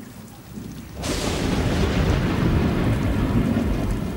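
Heavy rain pours down outdoors.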